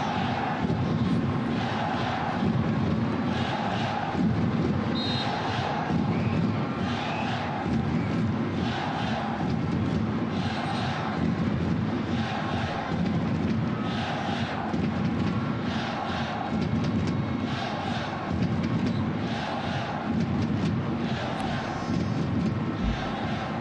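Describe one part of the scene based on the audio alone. A large crowd chants in a steady rhythm, echoing around a stadium.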